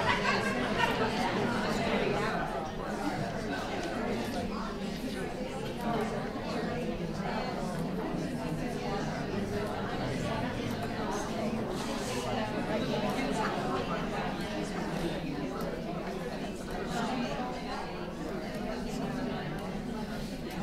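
A woman lectures calmly through a microphone.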